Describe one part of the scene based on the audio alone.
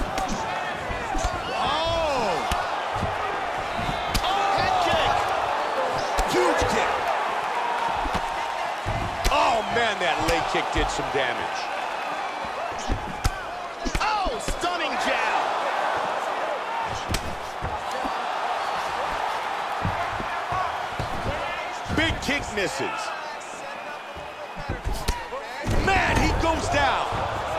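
Fists thud against bodies in quick blows.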